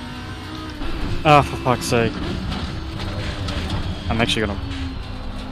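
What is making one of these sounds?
A racing car engine blips sharply as it shifts down through the gears.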